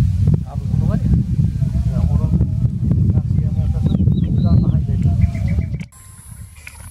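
A man speaks quietly and close by, outdoors in wind.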